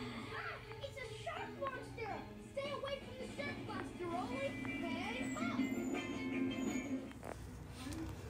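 Cartoon voices chatter through a small television speaker.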